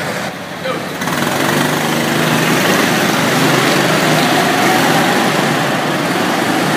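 Go-kart engines buzz and whine as karts drive past.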